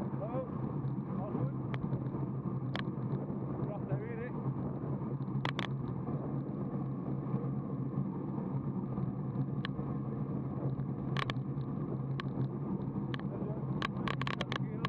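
Wind rumbles steadily across a moving microphone outdoors.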